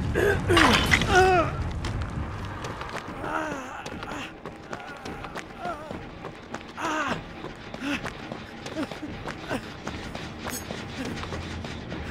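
Footsteps run quickly over grass and earth.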